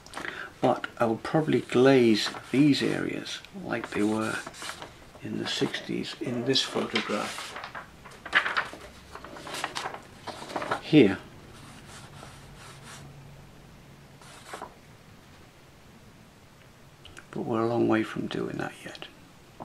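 Stiff paper rustles and crinkles as it is handled.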